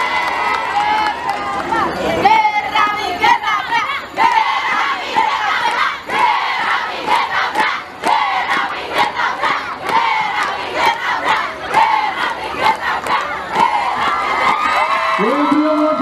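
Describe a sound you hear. A group of young women chant and shout a cheer in unison through microphones and loudspeakers outdoors.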